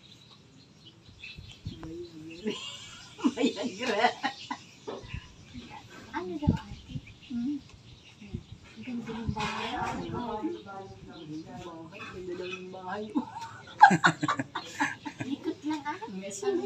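A middle-aged woman talks animatedly close by.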